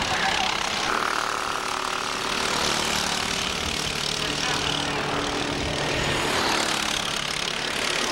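Kart engines buzz loudly as karts race past.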